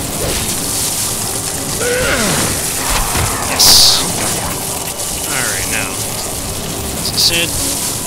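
Magic crackles and hums.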